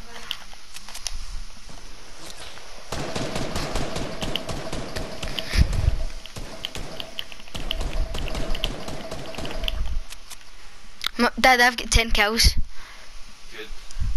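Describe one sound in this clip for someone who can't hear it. Footsteps patter on wooden steps.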